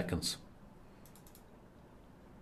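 A chess piece clicks onto a board.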